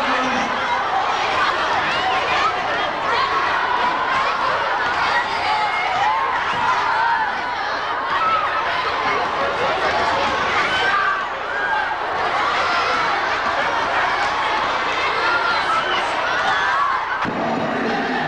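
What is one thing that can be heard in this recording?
A crowd of children shouts and chatters excitedly in an echoing hall.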